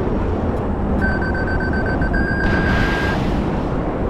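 A warning tone beeps in the cockpit.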